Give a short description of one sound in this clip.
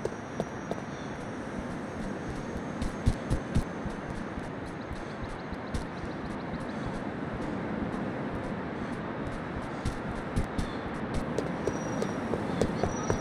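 Footsteps run over grass.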